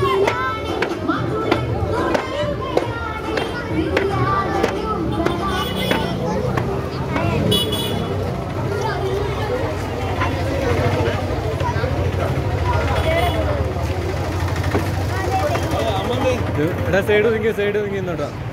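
A crowd of people chatters and calls out all around outdoors.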